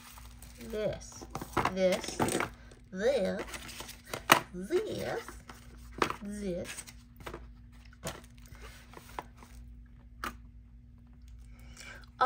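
Plastic bubble wrap crinkles softly as it is handled.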